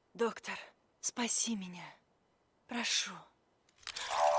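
A young woman speaks pleadingly, up close.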